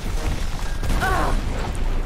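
A blast booms and crackles.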